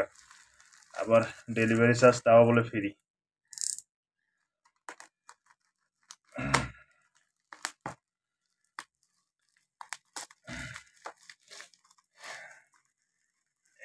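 Plastic wrap crinkles and rustles in hands.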